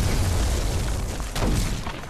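A loud crash of rock and wood bursts apart.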